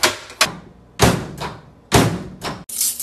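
A microwave door slams.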